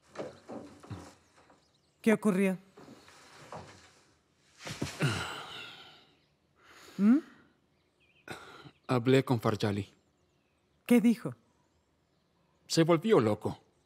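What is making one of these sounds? A man speaks in a strained, weary voice nearby.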